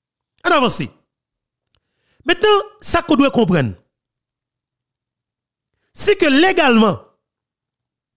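A man speaks with animation in short bursts, close to a microphone.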